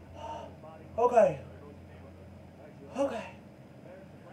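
A man in the background groans and exclaims.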